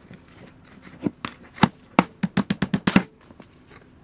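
A plastic bucket knocks repeatedly against a wooden bench.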